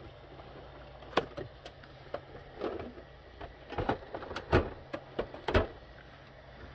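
Plastic game consoles knock and clatter as they are lifted and set down on a table.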